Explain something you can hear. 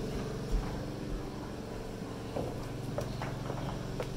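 Footsteps thud on wooden stair treads.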